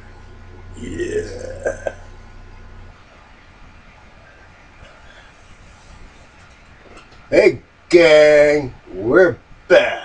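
An elderly man speaks close by with animation.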